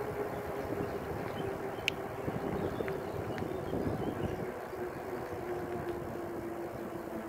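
Tyres roll steadily over smooth tarmac.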